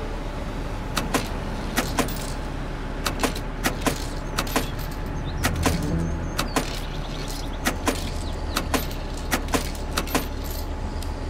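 Coins clink one after another into a change tray.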